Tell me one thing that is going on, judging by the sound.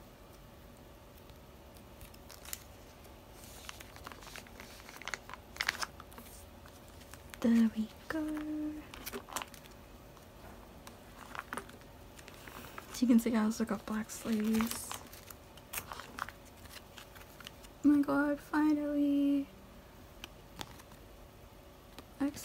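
Plastic sleeves rustle and crinkle as cards are handled.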